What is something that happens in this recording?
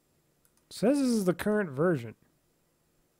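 A man speaks briefly and expressively, close to a microphone.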